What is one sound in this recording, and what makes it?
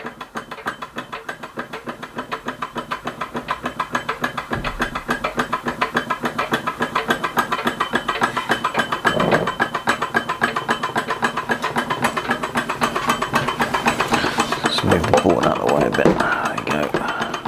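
A small toy hot air engine runs, its flywheel and crank clattering in a fast rhythm.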